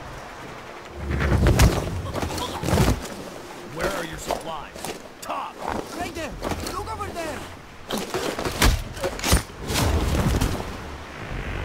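Bodies scuffle and thud in a struggle.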